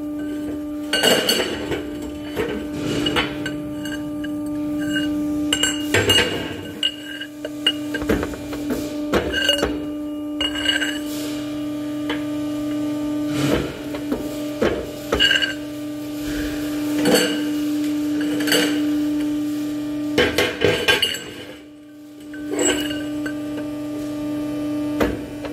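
A metal pipe clanks against metal parts.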